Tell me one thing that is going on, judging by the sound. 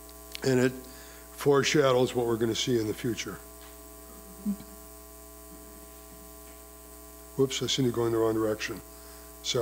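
An older man speaks calmly through a microphone and loudspeakers in a large room, pausing between phrases.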